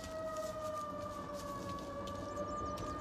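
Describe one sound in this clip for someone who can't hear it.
Footsteps walk across stone paving.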